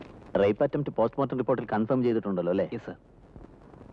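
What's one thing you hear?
A middle-aged man speaks with emphasis, close by.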